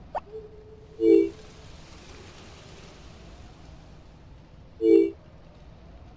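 A short chime sounds as a menu opens and closes.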